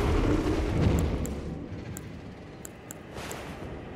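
Footsteps clink on a stone floor in a large echoing hall.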